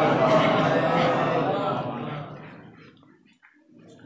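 A young man recites through a microphone.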